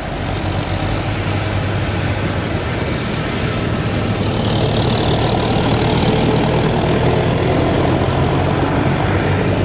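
A forage harvester's engine roars steadily nearby.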